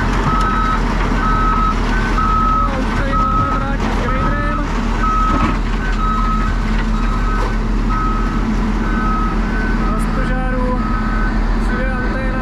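Heavy diesel engines rumble steadily close by.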